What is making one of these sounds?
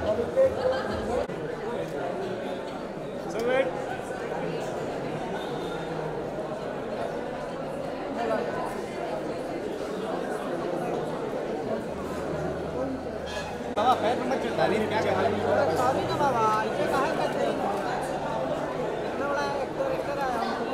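A crowd of men and women chatters all around.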